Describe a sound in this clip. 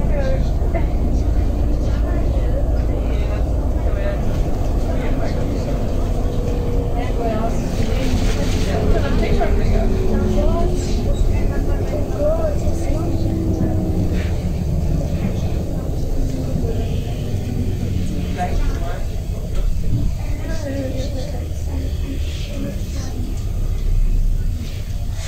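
A vehicle rumbles and hums steadily as it travels along a street.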